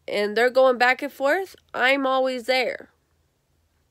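A young girl speaks in a high voice, close to the microphone.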